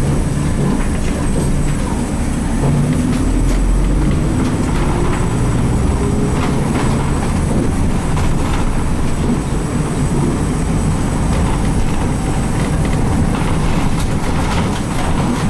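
A bus engine hums steadily from inside the cabin.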